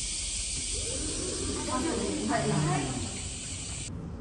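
Automatic glass doors slide open.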